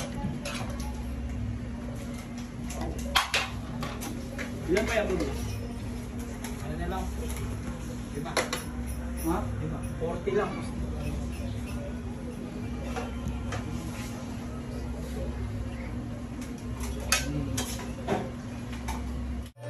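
A metal ladle scrapes and clinks against a metal pot.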